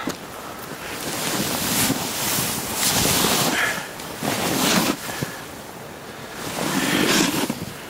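A snowboard scrapes and hisses across snow.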